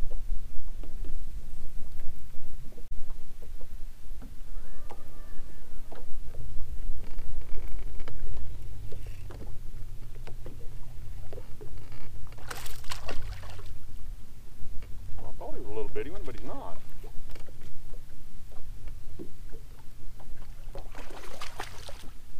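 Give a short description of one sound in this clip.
Wind rumbles steadily across the open water.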